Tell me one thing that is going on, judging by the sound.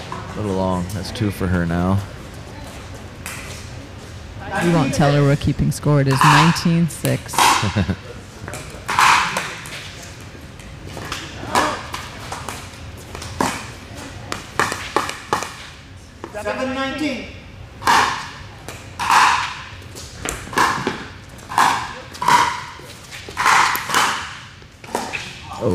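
Paddles hit a plastic ball with sharp, hollow pops in an echoing hall.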